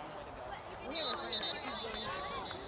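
A referee's whistle blows two short blasts outdoors.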